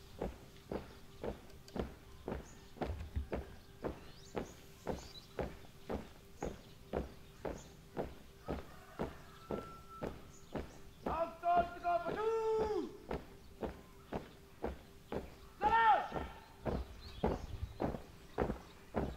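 A group marches in step with even, steady footfalls.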